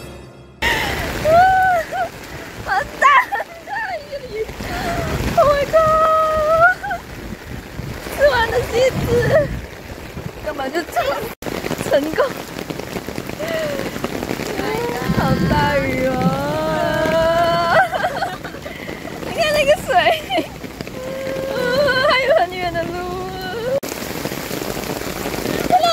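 Heavy rain pours down and splashes on the ground outdoors.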